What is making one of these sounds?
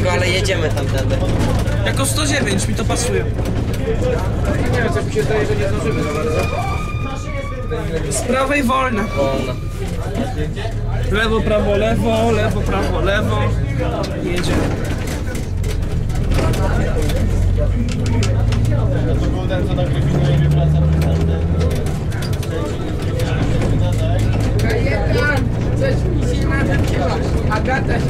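Tyres roll over a paved road.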